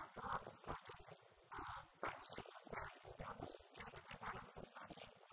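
A young woman speaks calmly into a microphone, heard through a loudspeaker in an echoing room.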